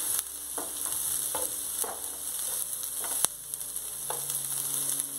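A spatula scrapes and taps against a pan.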